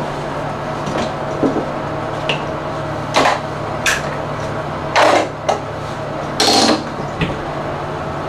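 Small objects clatter and knock on a counter.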